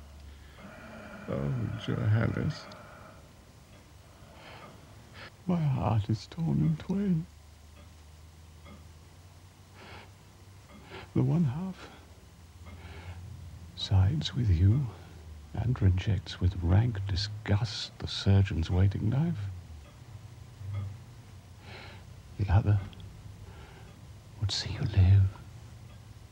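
A man speaks quietly and sorrowfully, close by.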